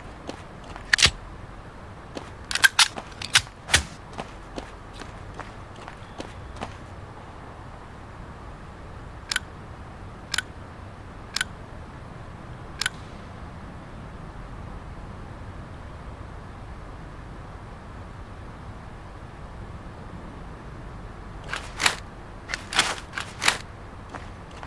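Gunshots ring out in sharp single cracks.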